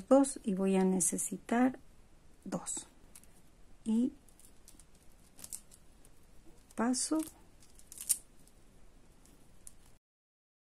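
Small plastic beads click softly against each other.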